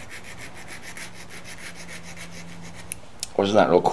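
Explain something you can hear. A metal file rasps in quick, steady strokes across a guitar fret.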